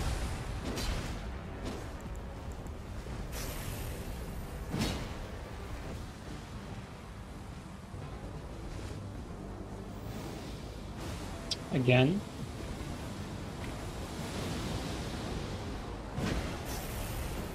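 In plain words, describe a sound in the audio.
A heavy weapon swings and strikes with a whoosh.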